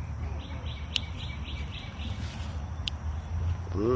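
Scissors snip plant stems.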